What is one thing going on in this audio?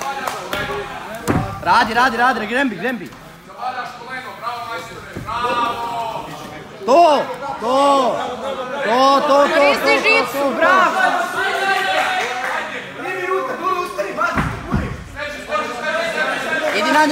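A man shouts loudly and excitedly nearby.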